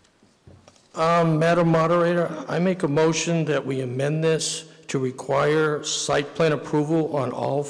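A man speaks calmly into a microphone over a loudspeaker, reading out.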